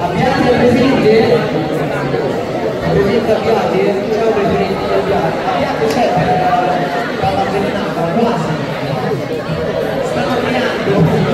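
A large crowd of children and adults chatters loudly in an echoing hall.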